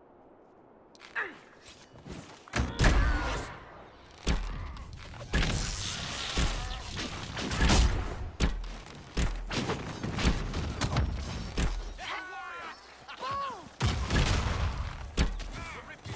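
Swords clash and magic blasts boom in a fight.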